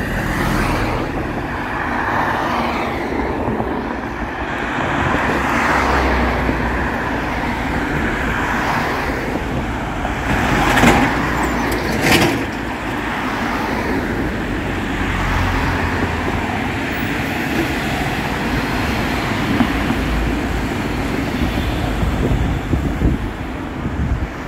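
Cars and vans drive past close by on a busy road.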